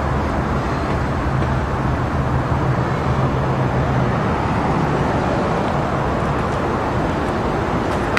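A freight train rumbles past and fades away.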